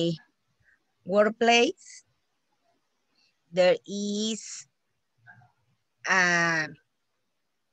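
A woman speaks slowly and clearly through an online call.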